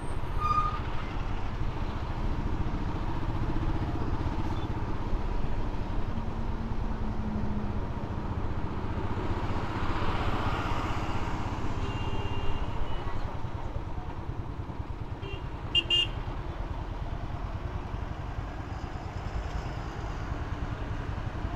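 A motorcycle engine rumbles steadily up close.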